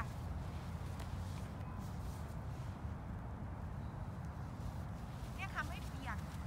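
A small dog's paws crunch through snow.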